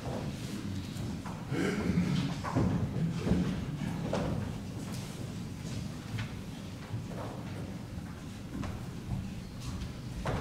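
Footsteps shuffle on a wooden floor in a large room.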